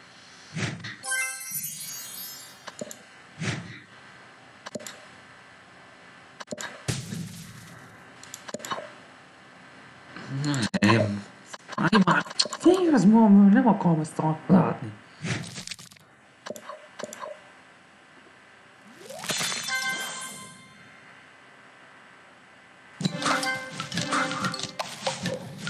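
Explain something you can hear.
Game music chimes and jingles.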